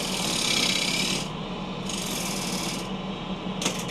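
A bowl gouge cuts into a spinning holly bowl on a wood lathe.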